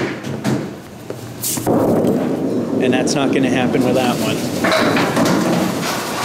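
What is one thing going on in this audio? A bowling ball rumbles as it rolls down a wooden lane.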